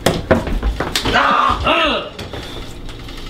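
A man shouts and laughs loudly.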